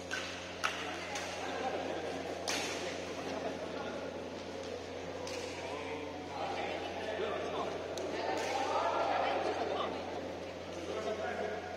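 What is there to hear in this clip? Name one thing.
Sneakers squeak and shuffle on a court floor.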